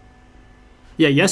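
A man speaks loudly into a close microphone.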